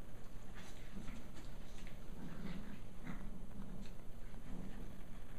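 Two dogs growl and grumble playfully.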